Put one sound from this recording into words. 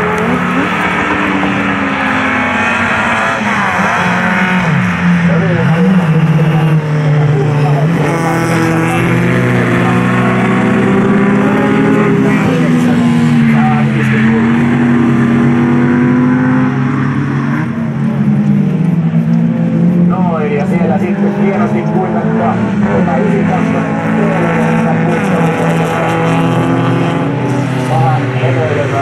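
Several race car engines rev loudly, rising and falling in pitch as the cars accelerate and brake.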